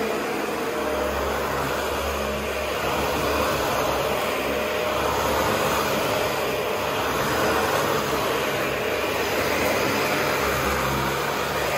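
A vacuum cleaner whirs loudly and steadily, up close.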